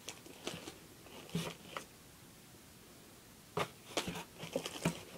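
Clothing and objects rustle and knock close by.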